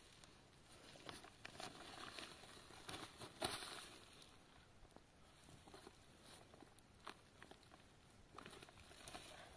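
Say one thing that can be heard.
Hands scrape and pat damp earth.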